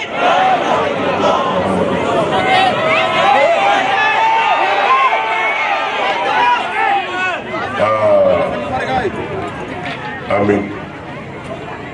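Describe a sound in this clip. A large crowd cheers and chants loudly outdoors.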